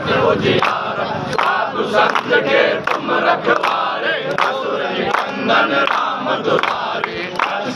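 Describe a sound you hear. A group of men chant loudly together outdoors.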